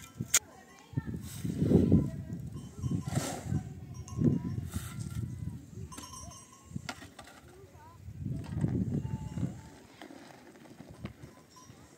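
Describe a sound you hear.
A wheelbarrow is pushed over rough ground.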